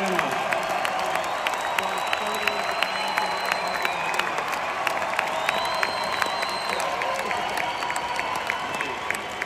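A rock band with strings plays live through loud speakers in a large echoing arena.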